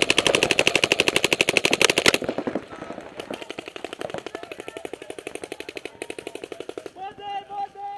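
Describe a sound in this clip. A paintball marker fires a fast stream of sharp popping shots close by.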